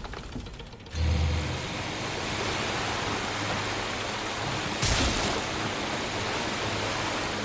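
Water rushes past a moving boat.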